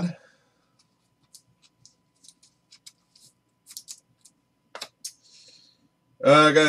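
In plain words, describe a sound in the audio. Cards and card sleeves rustle and tap softly as they are handled.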